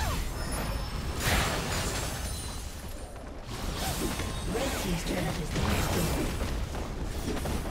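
Spells burst and weapons clash in a busy video game battle.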